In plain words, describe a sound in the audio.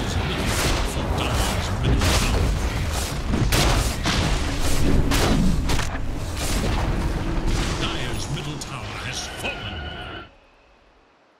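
Spell blasts and clashing weapons crackle and boom in a fierce battle.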